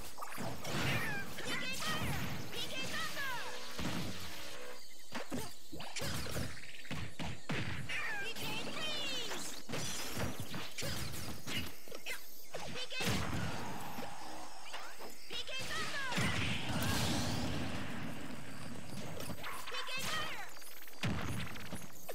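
Cartoon fighters' blows land with sharp smacks and thumps.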